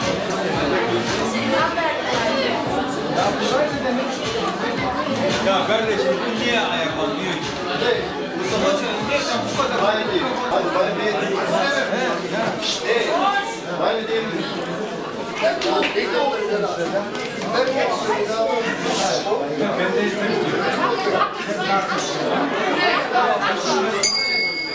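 A crowd of men chatters loudly.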